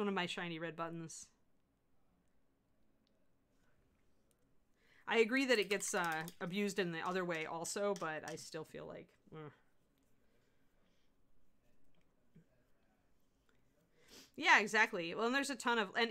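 A middle-aged woman talks calmly into a close microphone, with pauses.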